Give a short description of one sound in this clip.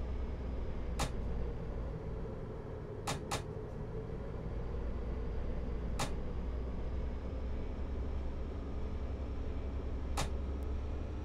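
Train wheels click over rail joints now and then.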